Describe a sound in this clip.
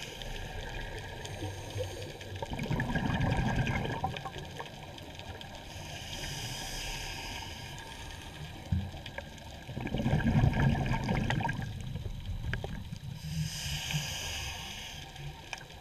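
Water swirls and rumbles with a muffled, underwater sound.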